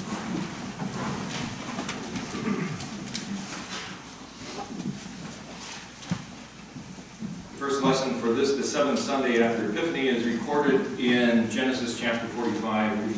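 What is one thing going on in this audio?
A man speaks calmly through a microphone in an echoing hall.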